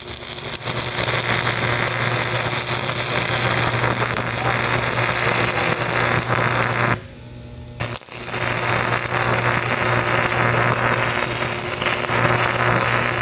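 An electric welding arc crackles and hisses steadily, with a low hum.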